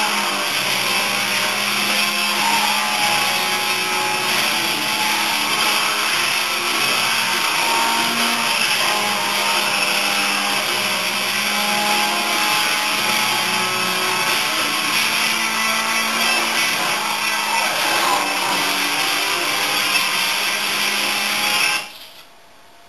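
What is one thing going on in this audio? A game car's engine roars steadily at high speed, heard from a television.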